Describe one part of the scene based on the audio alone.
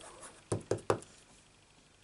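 A stamp taps on an ink pad.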